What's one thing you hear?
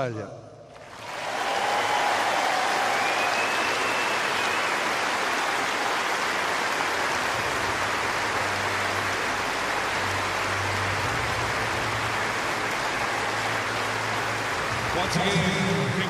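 A large crowd applauds loudly in a big echoing arena.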